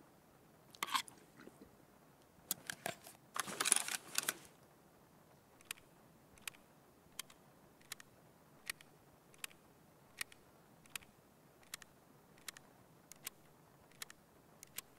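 Short interface clicks tick at a steady pace.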